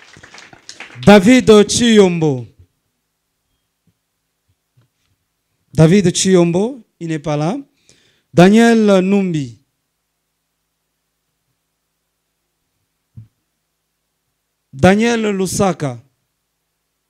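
A man speaks into a microphone with animation, in short phrases.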